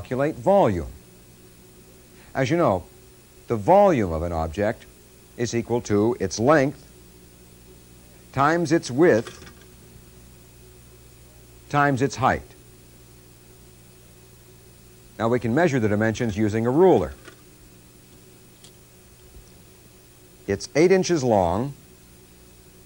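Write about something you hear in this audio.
A man speaks calmly and clearly, in short phrases with pauses.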